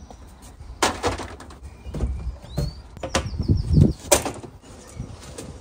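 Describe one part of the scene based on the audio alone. A plastic tub thumps and clatters as it is set down.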